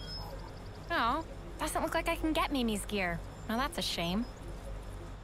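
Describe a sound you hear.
A young woman speaks playfully, close by.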